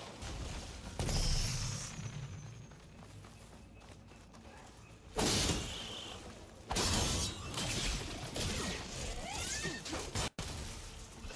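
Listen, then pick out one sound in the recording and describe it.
Heavy blows and bursts boom during a fight.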